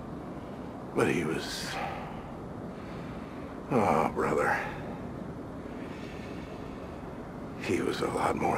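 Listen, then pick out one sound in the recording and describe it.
A man speaks quietly and slowly, close by.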